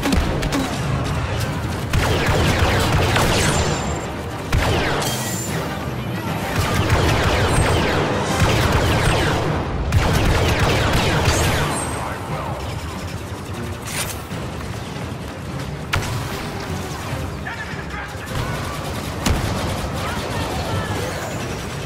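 Blaster fire crackles rapidly in a fierce battle.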